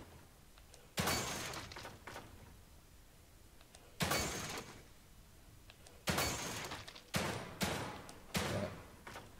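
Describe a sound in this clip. Gunshots ring out with a sharp echo, one at a time.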